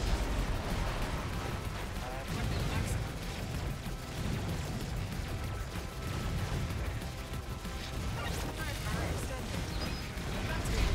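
Video game gunfire and explosions crackle and rumble steadily.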